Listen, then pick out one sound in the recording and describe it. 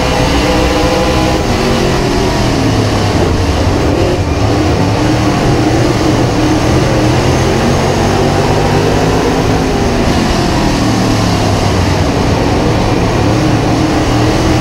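A race car engine roars loudly from close by, its pitch rising and falling as it speeds up and slows.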